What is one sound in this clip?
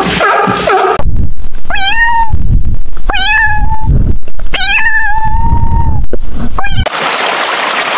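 A cat meows several times.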